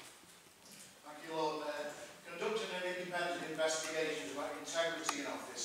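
An elderly man speaks calmly into a microphone, reading out.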